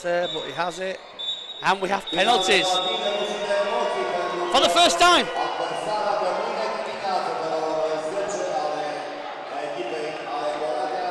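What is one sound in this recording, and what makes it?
A large crowd chants and cheers in an echoing indoor hall.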